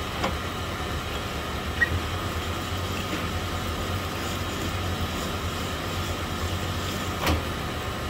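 Metal rasps as a part is worked back and forth on a spinning honing mandrel.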